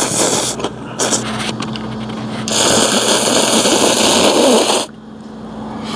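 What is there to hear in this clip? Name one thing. A young man slurps noodles loudly, close by.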